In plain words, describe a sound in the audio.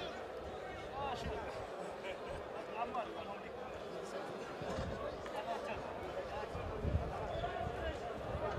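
A crowd of young men chants and shouts outdoors.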